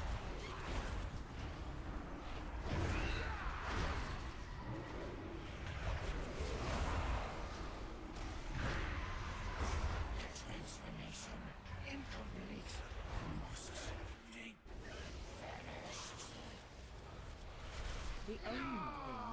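Spell blasts and magic impacts crackle and boom repeatedly.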